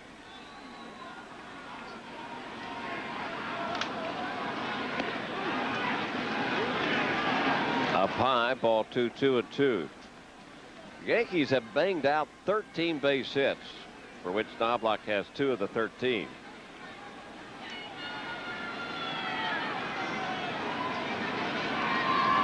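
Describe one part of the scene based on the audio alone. A large crowd cheers and roars in a big open stadium.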